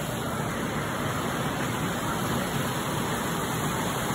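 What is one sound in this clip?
Canada geese dabble and splash with their bills in calm water.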